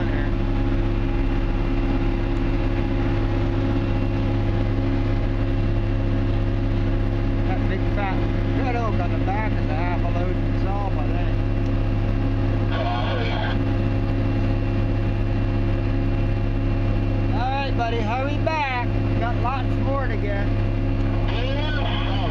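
A diesel truck engine rumbles steadily up close.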